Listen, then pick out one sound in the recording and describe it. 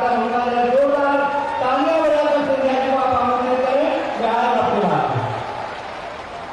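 An elderly man shouts with animation through a loudspeaker.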